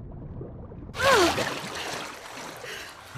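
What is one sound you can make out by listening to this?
A young girl gasps for breath.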